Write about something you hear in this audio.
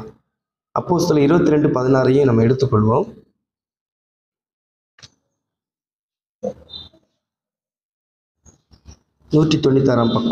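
A man speaks slowly and clearly into a microphone, with pauses.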